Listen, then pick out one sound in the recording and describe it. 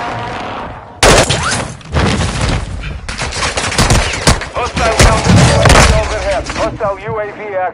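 Gunshots crack in quick bursts, close by.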